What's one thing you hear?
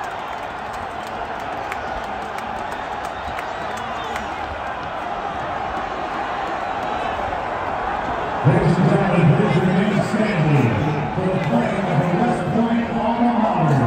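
A huge crowd cheers and roars loudly in a large open stadium.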